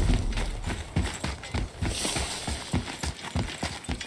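Heavy footsteps run across stone.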